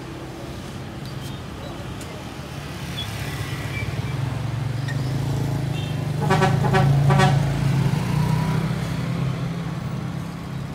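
A bus engine rumbles as the bus approaches and grows louder.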